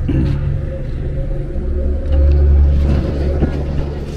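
A glass door opens and swings shut.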